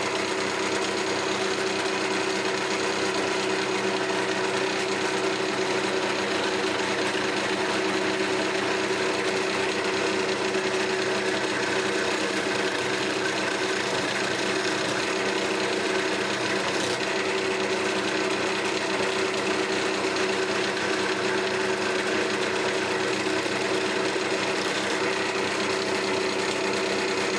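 A wood lathe hums as it spins.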